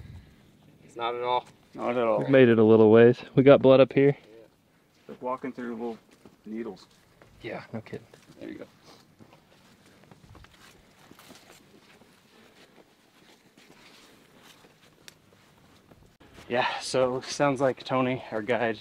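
A man talks calmly outdoors.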